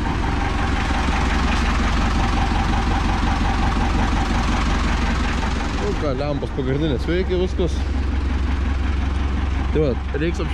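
A tractor engine idles with a steady, low rumble.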